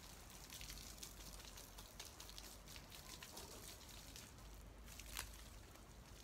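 Water from a hose splashes softly onto the ground.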